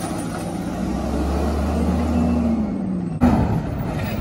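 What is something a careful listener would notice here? Hydraulics whine on a garbage truck.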